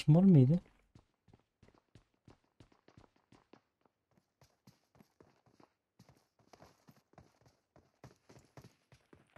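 Quick footsteps thud on a wooden floor.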